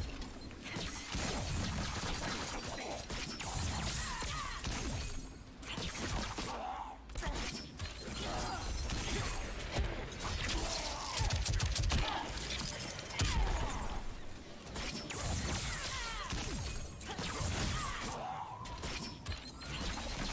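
Ice blasts crackle and whoosh.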